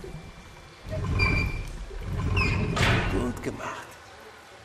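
A metal valve wheel squeaks as it is turned.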